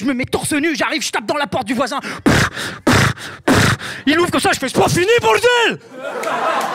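A young man beatboxes loudly into a microphone.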